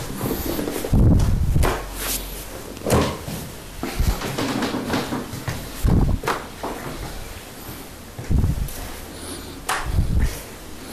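Joints crack with short sharp pops.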